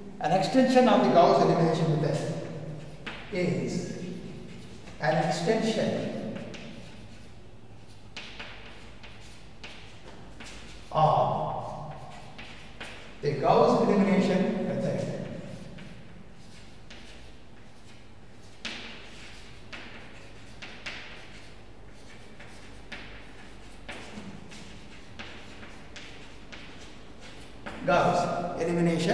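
An elderly man speaks slowly and calmly, close by.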